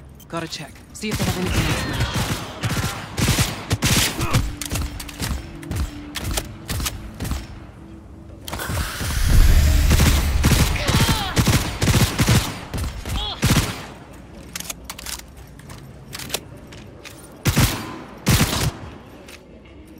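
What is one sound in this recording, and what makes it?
Guns fire in rapid bursts of loud shots.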